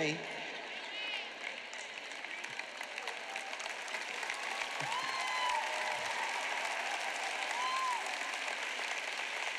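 A large audience applauds and cheers loudly in a big hall.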